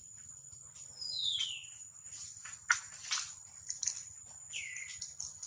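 A baby monkey squeaks in short, high cries.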